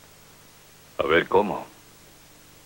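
An older man replies in a low, stern voice.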